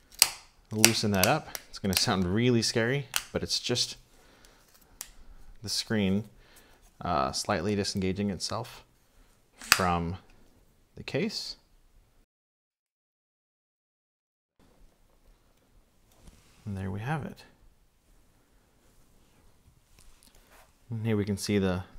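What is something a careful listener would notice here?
Plastic parts click and tap softly as they are handled.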